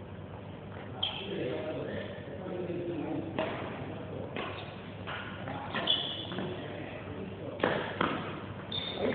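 A badminton racket hits a shuttlecock with sharp pops.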